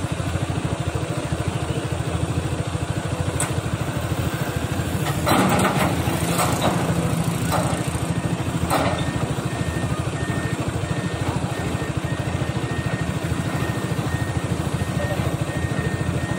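A diesel excavator engine rumbles steadily at a distance.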